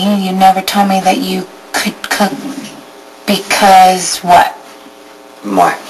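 A young woman speaks softly and emotionally close by.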